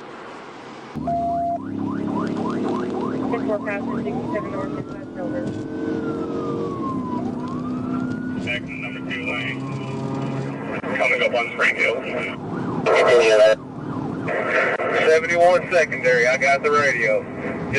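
A car engine drones steadily while driving at speed.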